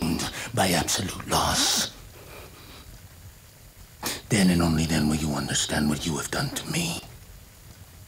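A man speaks in a low, menacing voice close by.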